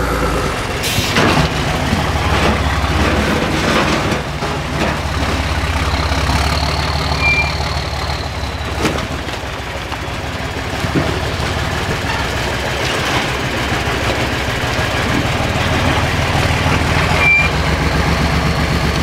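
Rocks crunch and scrape under heavy tyres.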